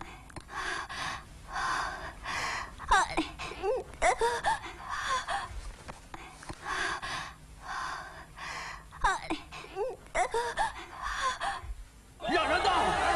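A young woman moans and gasps in rhythmic breaths, close by.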